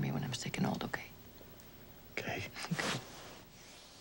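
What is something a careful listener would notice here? A woman speaks softly and warmly up close.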